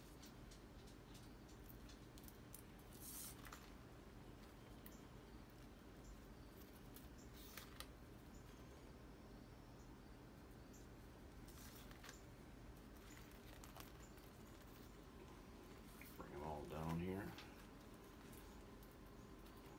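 Dry chili peppers rustle and crinkle softly in close handling.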